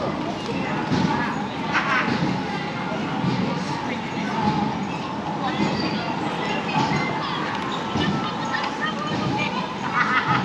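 A crowd of passers-by chatters in the open air.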